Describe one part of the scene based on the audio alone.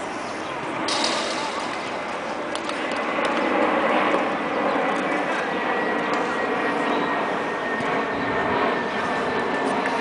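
A jet airplane roars overhead.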